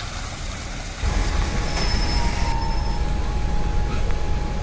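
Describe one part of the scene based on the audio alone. A bus engine rumbles loudly and close by.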